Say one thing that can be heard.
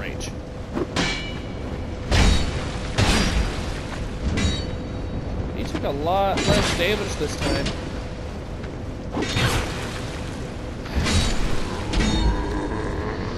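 Heavy weapon blows thud and clang.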